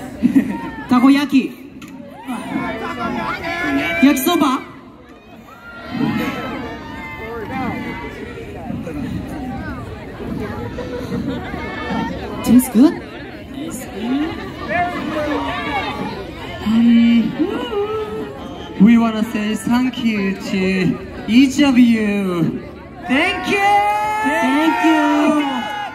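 Young men sing together through loudspeakers outdoors.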